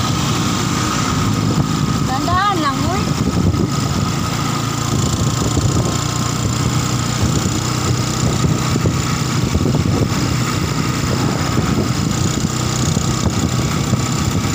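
A motorcycle engine drones steadily up close.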